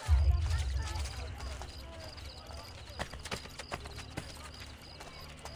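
Footsteps run quickly over cobblestones.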